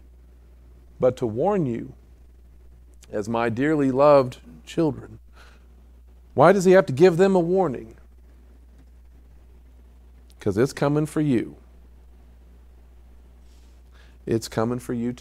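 A middle-aged man speaks calmly through a microphone, with pauses between phrases.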